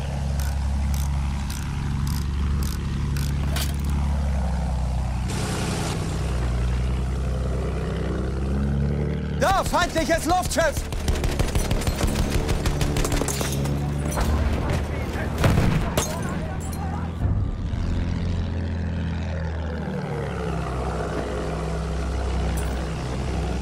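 A biplane's piston engine drones.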